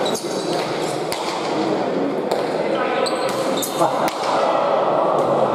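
A crowd murmurs steadily in the background of an echoing hall.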